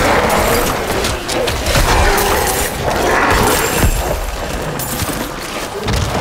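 Deep booming game effects thud repeatedly.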